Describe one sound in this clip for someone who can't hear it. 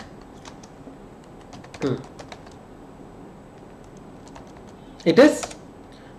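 Computer keys click as a query is typed.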